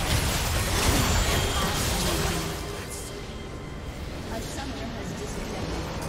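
Spells crackle and blast loudly in a hectic fight.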